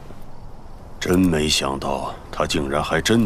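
An elderly man speaks calmly and gravely.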